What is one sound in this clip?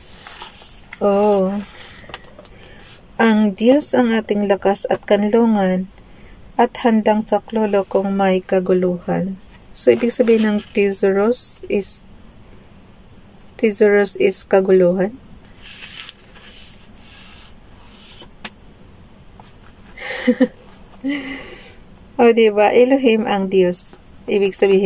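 A middle-aged woman speaks calmly and slowly, close to a microphone, with pauses between phrases.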